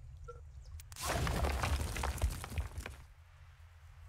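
A structure collapses with a rushing, rumbling crash.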